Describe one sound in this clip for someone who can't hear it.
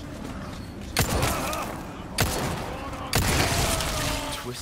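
Gunshots bang loudly one after another.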